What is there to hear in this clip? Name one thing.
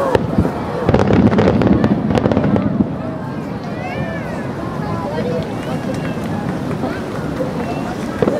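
Fireworks burst with loud booms and dense crackling.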